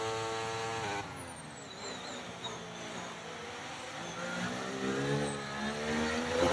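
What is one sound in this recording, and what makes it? A racing car engine drops in pitch and quietens as the car slows for a corner, then revs up again.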